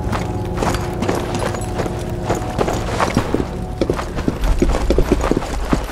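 Wooden boards knock and creak under a climber's hands and feet.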